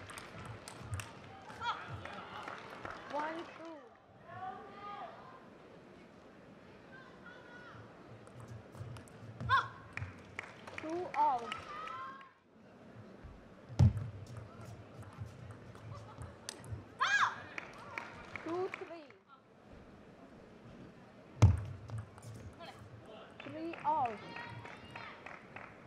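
A ball clicks back and forth on paddles and a table in a quick rally.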